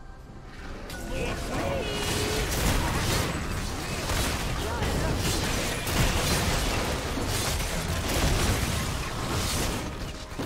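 Game spell effects whoosh and crackle as characters battle a large monster.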